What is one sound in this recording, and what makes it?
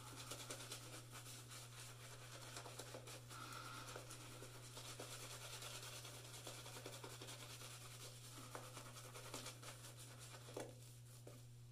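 A shaving brush swishes and squelches through lather on a face.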